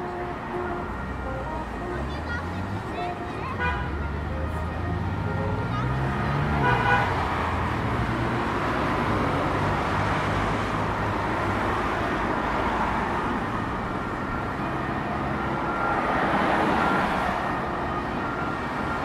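Traffic hums steadily outdoors on a busy street.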